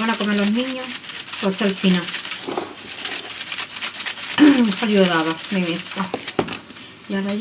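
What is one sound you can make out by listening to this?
Salt shakes from a shaker onto salad.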